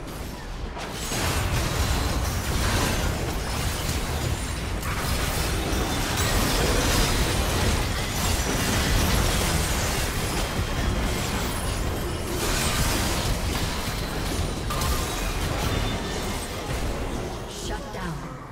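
Game spell effects burst and clash in a busy fight.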